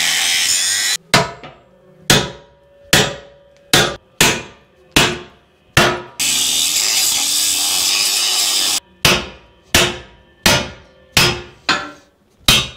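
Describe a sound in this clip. A hammer strikes metal in sharp, ringing blows.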